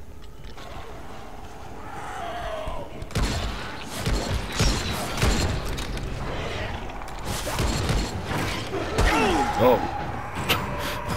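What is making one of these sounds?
A creature snarls and growls close by.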